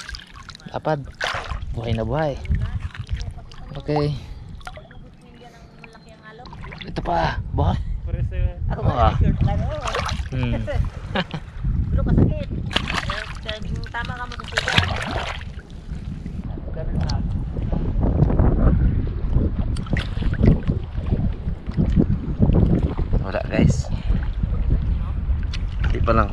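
Water splashes and laps around a swimmer.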